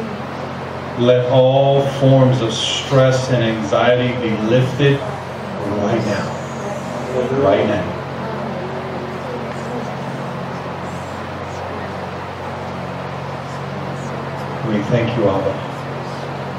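A man speaks through a microphone over loudspeakers in an echoing hall, in short bursts with pauses.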